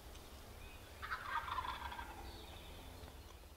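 A man whispers softly close by.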